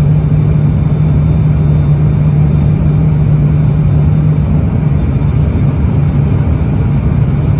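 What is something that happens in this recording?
An aircraft's propeller engines drone steadily and loudly from close by.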